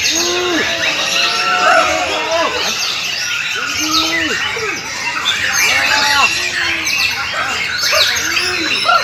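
Many caged birds chirp and whistle busily, close by.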